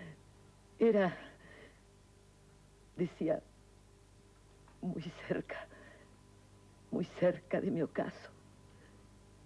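An elderly woman speaks slowly and emotionally, in short phrases with pauses, close to a microphone.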